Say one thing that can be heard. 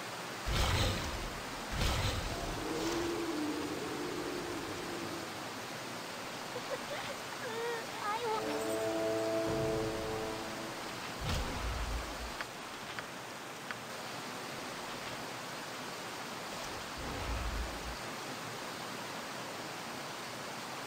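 Water from a waterfall rushes steadily.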